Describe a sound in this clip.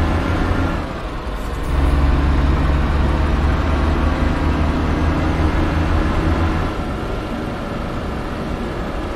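A heavy truck engine drones steadily.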